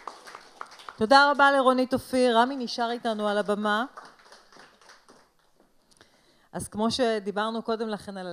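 A woman sings expressively through a microphone.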